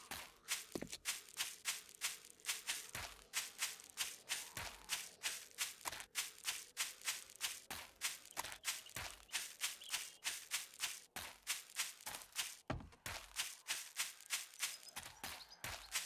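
Footsteps crunch steadily through grass and undergrowth at a quick pace.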